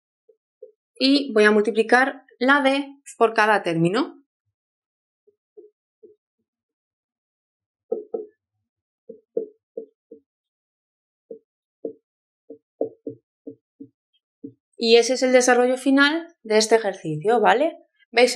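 A young woman speaks calmly and clearly close by.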